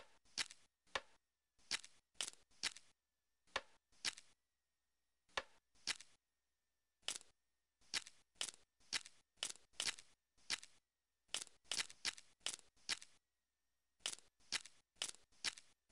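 Puzzle pieces click into place, one after another.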